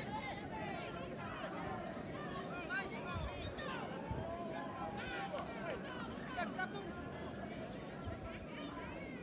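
Football players shout to one another far off across an open field.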